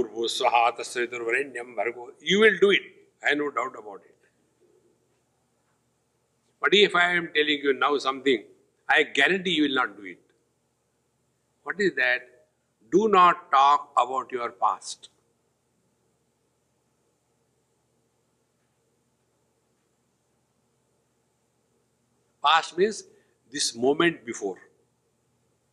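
An elderly man speaks calmly into a close microphone, pausing often.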